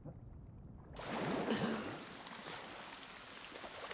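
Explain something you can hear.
Water splashes as a swimmer surfaces and wades.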